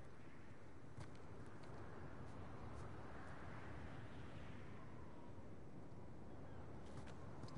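Footsteps crunch on rock and snow.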